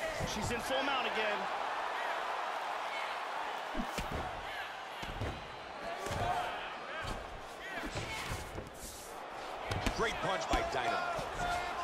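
Punches thud heavily against a body.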